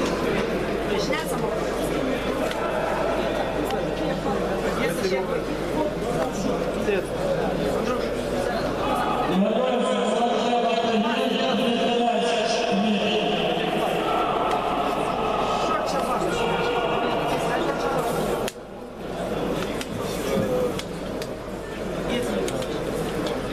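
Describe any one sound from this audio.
A crowd of voices murmurs and shouts in a large echoing hall.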